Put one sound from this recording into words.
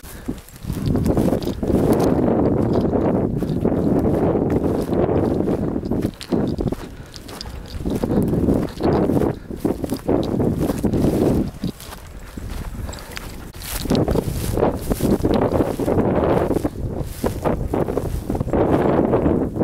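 Wind gusts loudly across open ground, buffeting in bursts.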